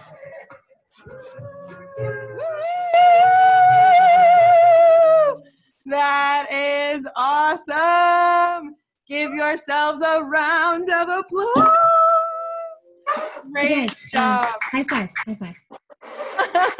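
A man sings loudly over an online call.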